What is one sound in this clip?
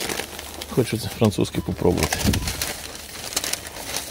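A paper bag rustles and crinkles as it is opened.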